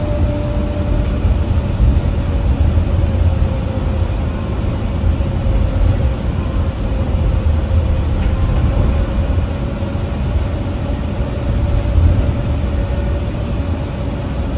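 A bus motor whines with a steady tone.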